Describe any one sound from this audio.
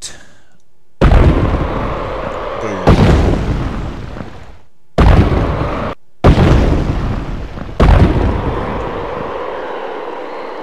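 A large creature crashes heavily to the ground with loud booming thuds.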